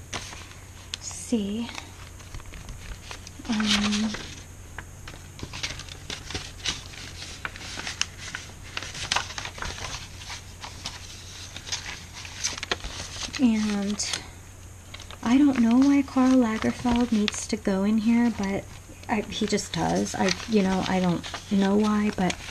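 Paper rustles and crinkles as pages are handled and turned.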